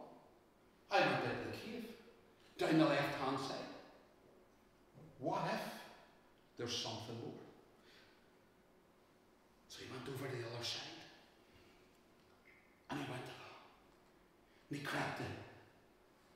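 An elderly man speaks in bursts with animation in a hall with a slight echo.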